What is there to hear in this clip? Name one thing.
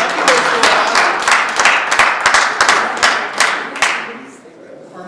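An audience claps loudly in an echoing hall.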